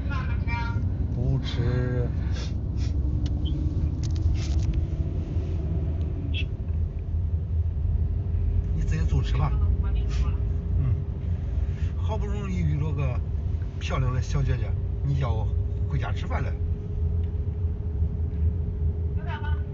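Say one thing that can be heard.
A young woman talks casually, close by.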